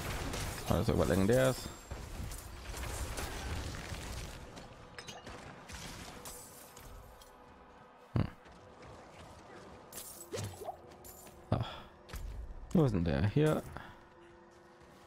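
Heavy blows and magic blasts strike in a fight.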